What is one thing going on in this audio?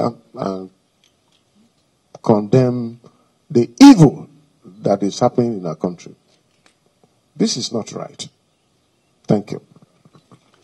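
An elderly man speaks firmly into a microphone, pausing between phrases.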